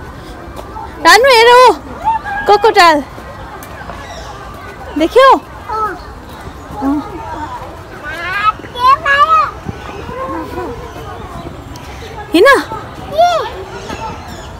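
A toddler squeals and babbles excitedly nearby.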